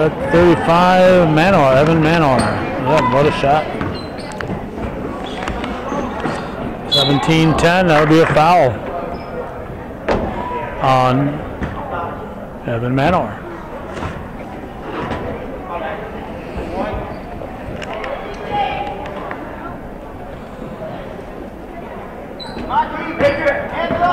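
A ball bounces on a wooden court.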